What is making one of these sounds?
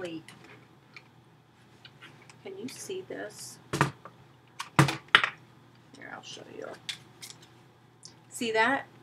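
A middle-aged woman speaks quietly and calmly, close to a microphone.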